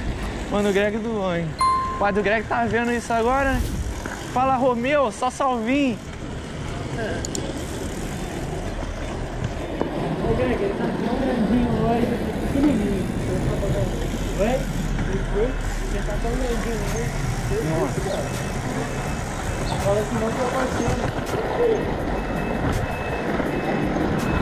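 Skateboard wheels rumble on asphalt.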